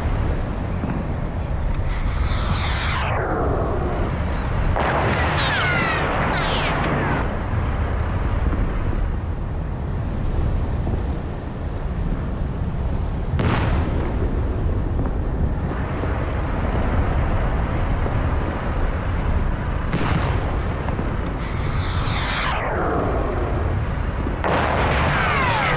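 Heavy tank engines rumble steadily.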